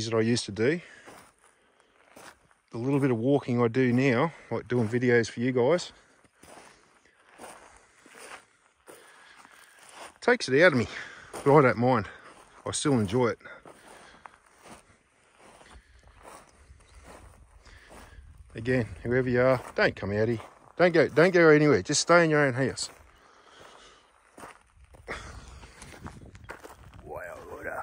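A middle-aged man talks calmly close to the microphone, outdoors.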